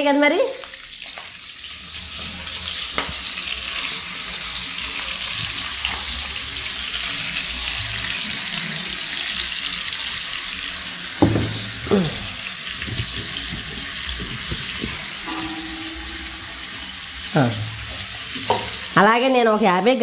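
Fish sizzles and crackles in hot oil.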